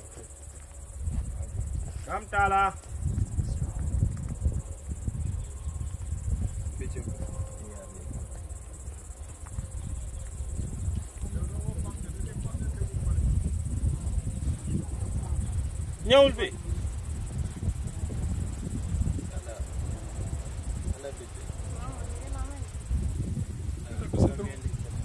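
Wind blows and rumbles across the microphone outdoors.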